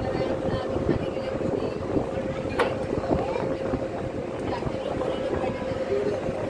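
A ferry engine hums steadily with a low drone.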